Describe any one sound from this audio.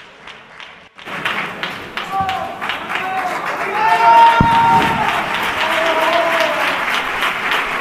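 A group of singers sings together on a stage, heard in a large hall.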